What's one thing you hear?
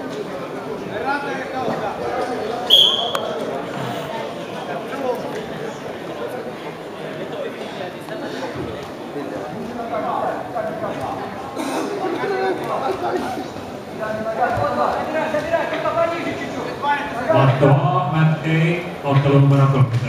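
A crowd of spectators murmurs and chatters in a large echoing hall.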